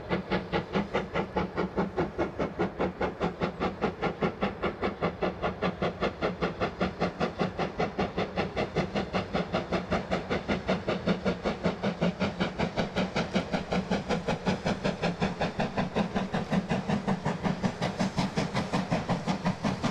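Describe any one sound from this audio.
A steam locomotive chuffs rapidly and steadily.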